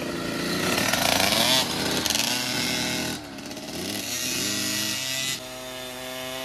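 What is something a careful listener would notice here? Small dirt bike engines whine and rev up close.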